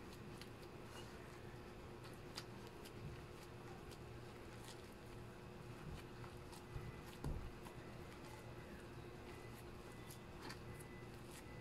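Hands squish and knead dough in a glass bowl.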